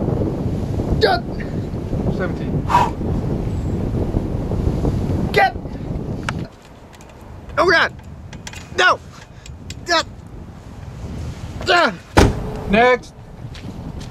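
A man speaks in short, loud phrases nearby.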